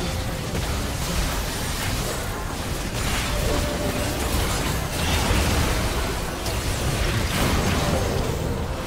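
Magic spells crackle and burst in a game battle.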